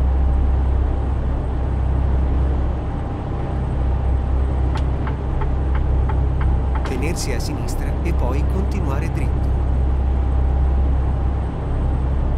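Tyres roll steadily on a highway.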